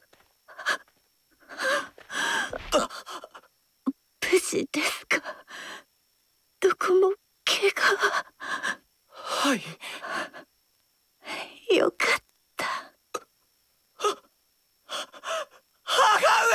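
A young woman speaks weakly and tearfully, close by.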